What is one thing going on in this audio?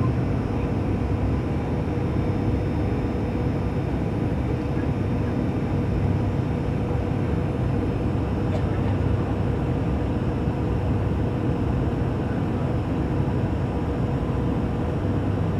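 An airliner's engines drone steadily inside the cabin in flight.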